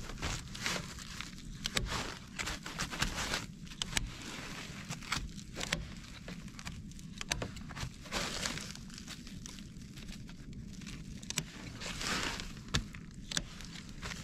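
A foil sheet rustles and crinkles as it is handled.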